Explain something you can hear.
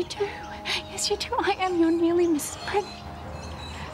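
A young woman speaks tearfully and pleadingly, close by.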